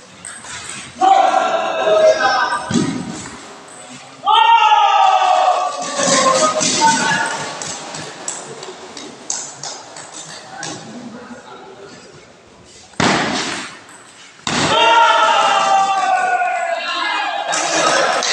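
Spectators cheer and shout loudly.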